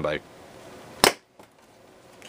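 A plastic toy blaster clicks as a foam dart is loaded.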